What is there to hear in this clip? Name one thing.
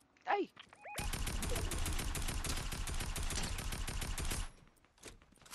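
Rapid gunshots fire from a rifle.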